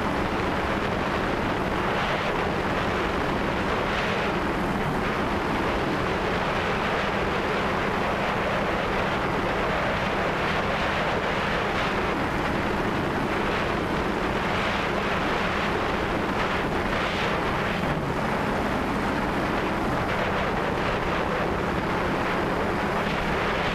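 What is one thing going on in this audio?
A drone's propellers whir steadily close by.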